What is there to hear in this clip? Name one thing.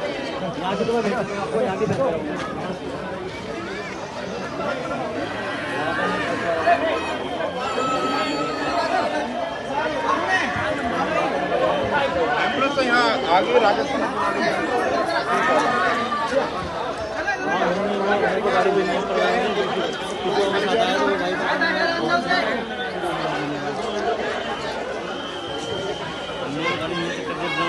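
A crowd of men talk and shout excitedly close by.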